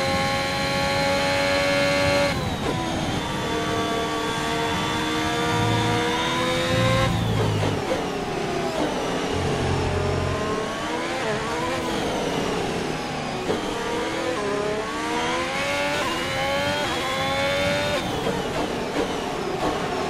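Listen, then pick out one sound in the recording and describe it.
A racing car engine screams at high revs, rising and dropping sharply with each gear change.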